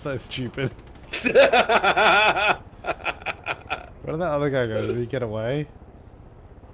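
A second young man laughs loudly close to a microphone.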